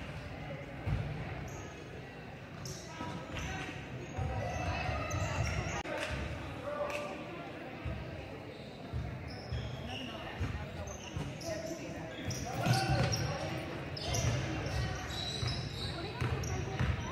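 Players shout and call out to each other from across the hall.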